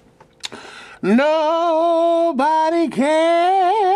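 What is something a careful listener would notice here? A man shouts and wails loudly in a long drawn-out cry.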